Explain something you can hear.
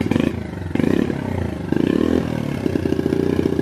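A small motorcycle engine revs up briefly, close by.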